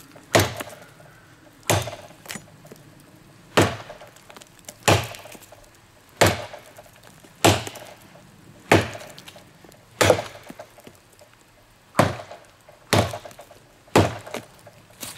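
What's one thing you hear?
A machete chops into a tree trunk with sharp, regular thuds.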